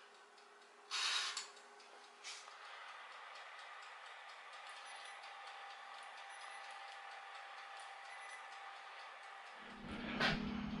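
An oven hums softly and steadily.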